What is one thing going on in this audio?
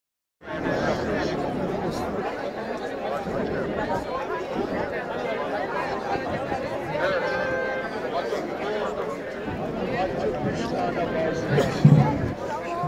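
A large crowd of men and women murmurs and prays aloud close by, outdoors.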